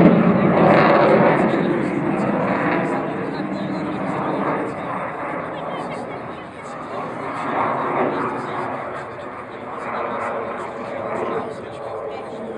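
A jet plane roars overhead with a loud, rumbling noise that slowly fades and swells.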